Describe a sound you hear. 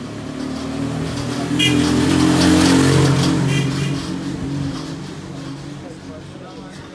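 A crowd of men and women chatter in a busy street outdoors.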